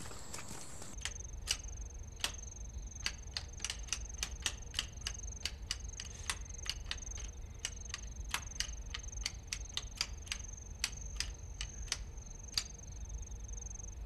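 Abacus beads click rapidly.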